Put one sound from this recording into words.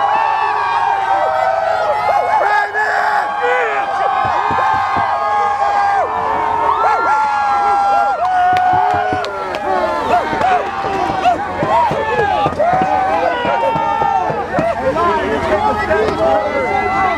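A large crowd of men and women sings and chants together outdoors.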